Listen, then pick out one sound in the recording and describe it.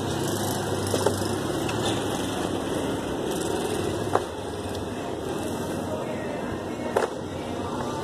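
Heavy rubber mats slap and thud as they are dropped onto a pile.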